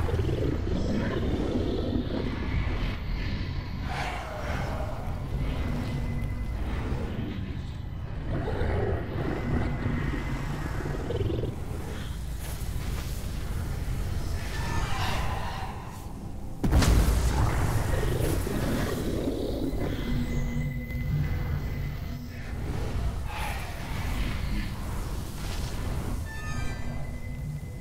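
Quick footsteps rustle through undergrowth.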